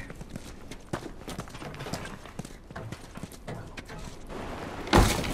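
Hands and boots clank on metal ladder rungs.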